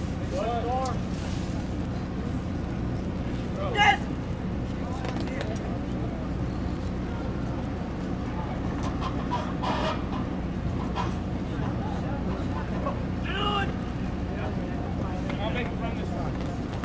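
Young players shout to each other across an open field, heard from a distance.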